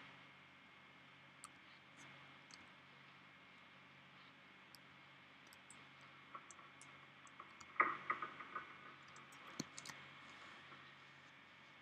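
Footsteps creak softly on wooden floorboards.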